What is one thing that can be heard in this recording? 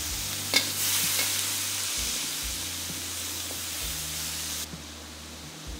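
Food sizzles loudly in a hot wok.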